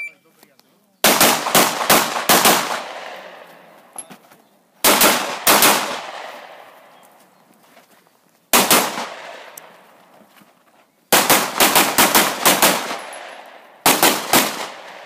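A pistol fires rapid bursts of loud shots that echo outdoors.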